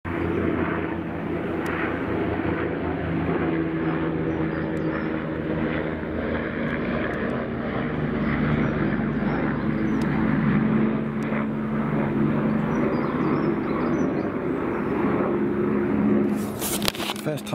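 A helicopter's rotor thuds steadily overhead.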